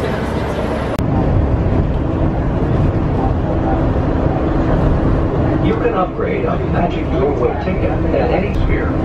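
A train rumbles steadily along its track.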